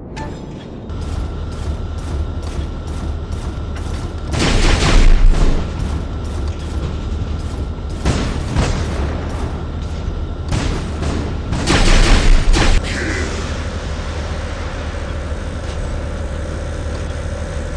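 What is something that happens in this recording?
A large walking machine rumbles with a low, steady hum.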